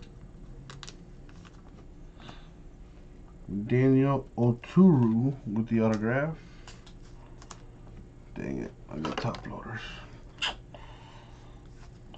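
Trading cards rustle and slide against each other in a man's hands.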